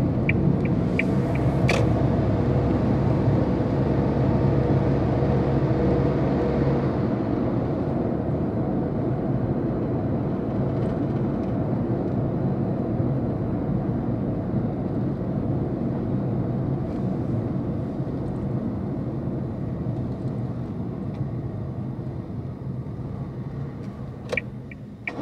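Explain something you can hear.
Tyres roll on the road with a low, steady rumble.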